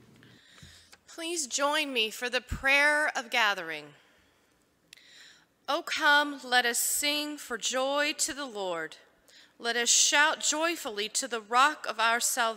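A man reads aloud through a microphone in a large echoing hall.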